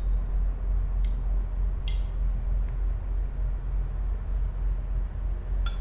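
A spoon scrapes against a ceramic bowl.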